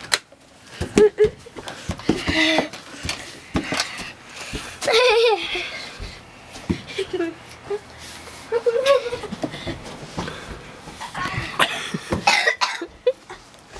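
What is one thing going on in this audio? A young boy shouts excitedly close by.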